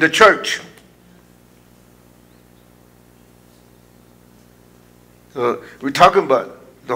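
A man speaks calmly into a microphone, with pauses.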